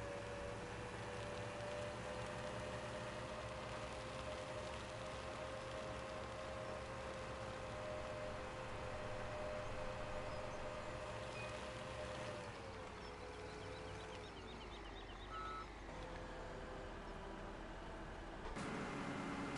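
A tractor engine drones steadily and drops in pitch as it slows.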